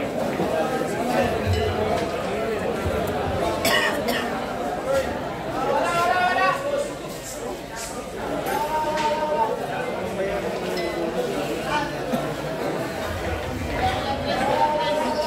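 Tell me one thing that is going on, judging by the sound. A crowd of young men chatters and calls out nearby.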